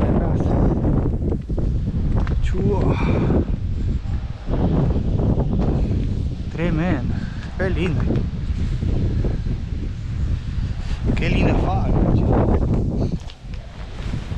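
Wind blusters outdoors.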